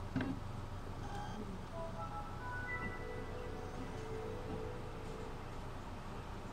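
A computer plays a soft startup chime of rising notes.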